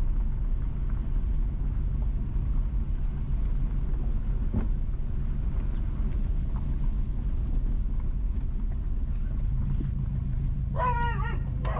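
Wind rumbles steadily and gusts outdoors.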